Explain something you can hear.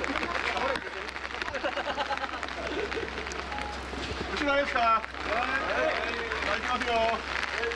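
A crowd of men chatter and call out close by.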